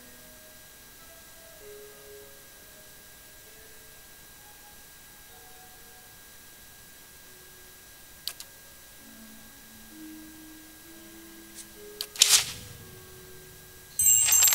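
Soft music plays gentle, drawn-out notes.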